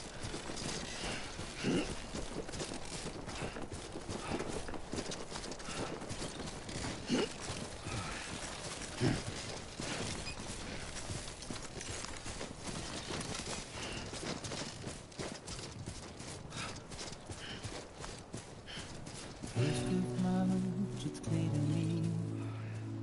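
Footsteps thud quickly on grass as someone jogs.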